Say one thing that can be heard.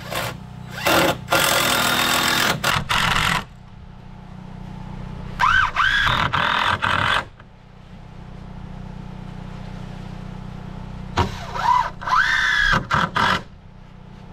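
A cordless impact driver whirs and hammers as it drives screws into wood.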